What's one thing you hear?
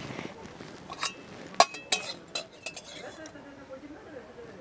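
A metal spatula clinks against a plate.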